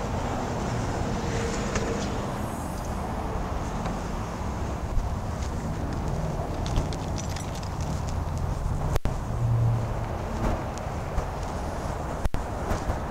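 A car engine idles with a deep, steady exhaust rumble.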